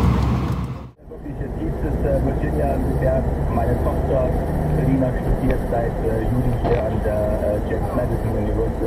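A car's engine hums and its tyres roar steadily on the road, heard from inside the car.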